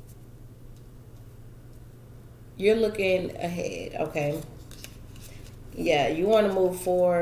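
Playing cards rustle and tap softly in hands.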